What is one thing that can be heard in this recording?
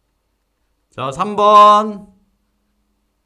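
A young man speaks briefly and clearly into a close microphone.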